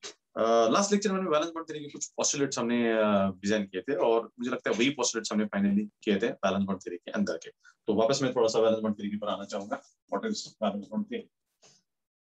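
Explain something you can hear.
A man talks calmly and close by, as if into a microphone.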